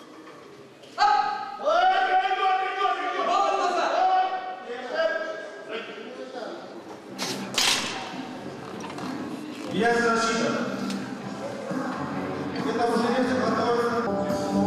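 Several men shout encouragement loudly in an echoing hall.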